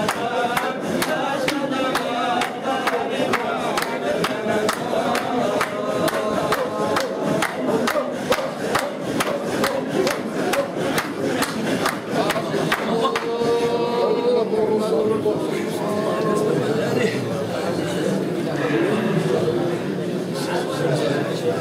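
A group of men chant together in a room.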